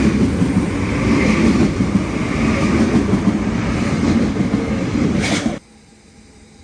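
A train rushes past close by with a loud rumble.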